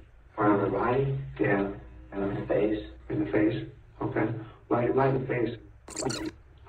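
A man asks questions calmly, heard through a recording.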